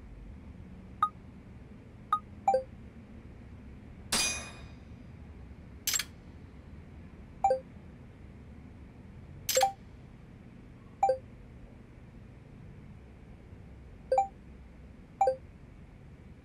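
Short electronic interface chimes beep now and then.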